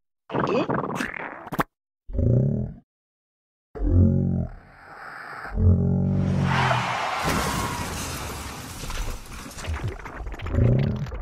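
A cartoon creature babbles and exclaims in a squeaky, comic voice, close up.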